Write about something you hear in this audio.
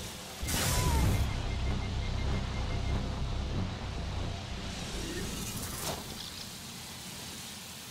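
Energy beams crackle and roar.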